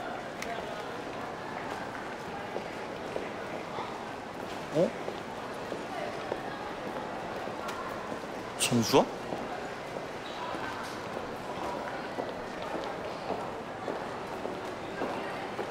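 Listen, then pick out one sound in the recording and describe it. A crowd of teenagers chatters indoors.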